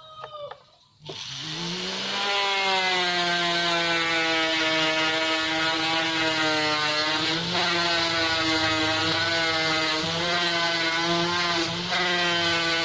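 A small rotary grinder whirs up and whines steadily at high speed.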